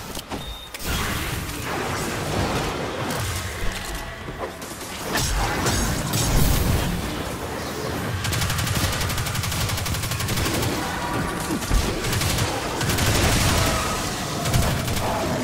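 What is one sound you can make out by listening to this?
Electric crackling bursts out in loud blasts.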